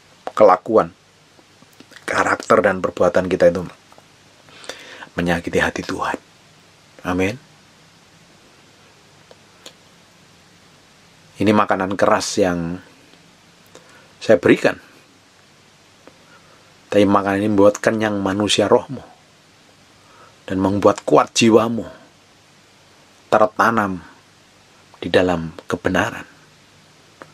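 A middle-aged man speaks calmly and close by, in short phrases with pauses.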